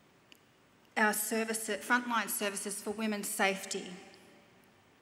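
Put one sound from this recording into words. A woman speaks calmly into a microphone, heard through loudspeakers in a large hall.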